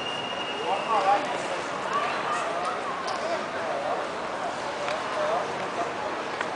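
A crowd of men and women talk and chatter nearby outdoors.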